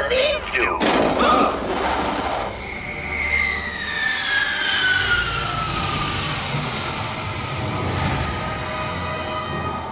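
Small aircraft whoosh past overhead with a falling whine.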